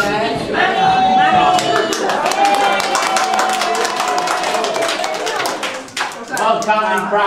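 A group of men and women sings together.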